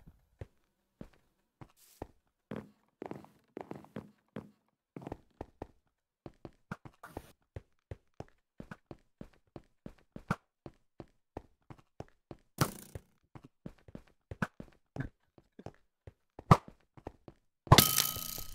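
Quick footsteps patter steadily across a hard floor.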